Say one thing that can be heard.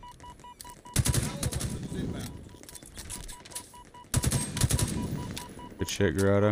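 Video game gunfire crackles in rapid bursts.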